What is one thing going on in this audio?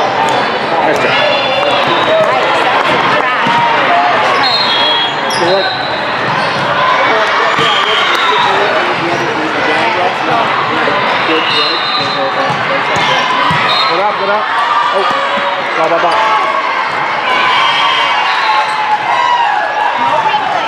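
Squeaky sneakers squeal on a hard court.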